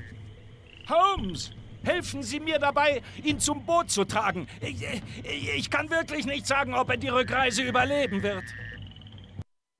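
A man speaks urgently, close by.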